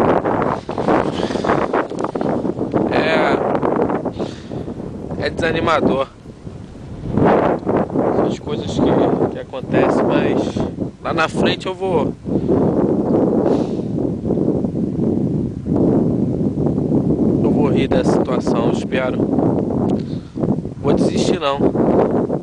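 A young man talks close to the microphone, calmly.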